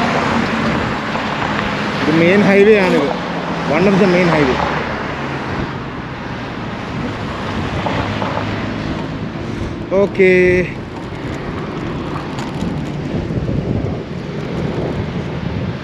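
Wind buffets the microphone of a moving bicycle.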